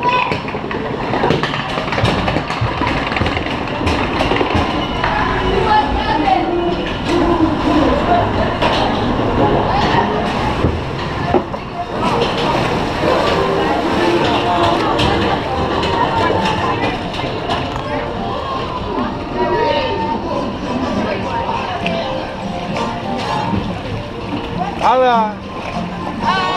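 A wooden boat knocks and rumbles as it slides along a water channel.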